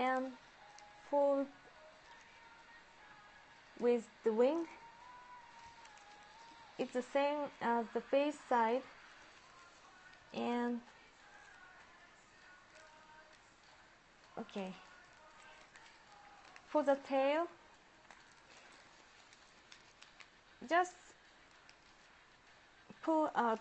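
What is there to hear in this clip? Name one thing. Paper rustles softly as it is folded.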